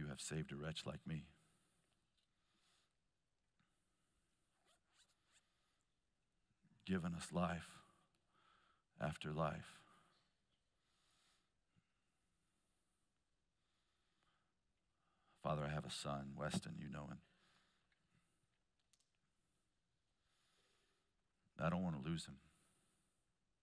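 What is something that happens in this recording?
A man speaks calmly through a microphone in short bursts, with long pauses between.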